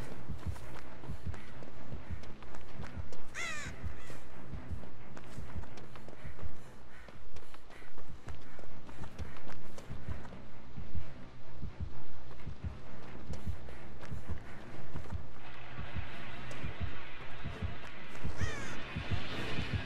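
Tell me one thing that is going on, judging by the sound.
Quick footsteps run across gravel and pavement.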